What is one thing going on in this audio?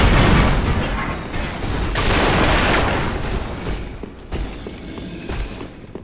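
Armoured footsteps clank on stone steps.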